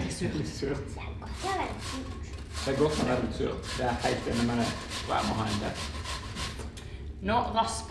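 An apple is rubbed against a metal grater.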